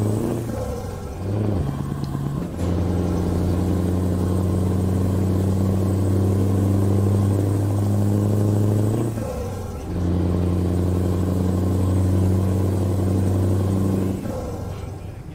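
A truck engine drones steadily, rising and falling in pitch.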